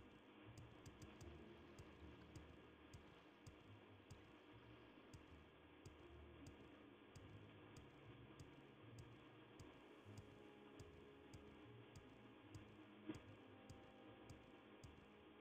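Footsteps thud steadily on stone.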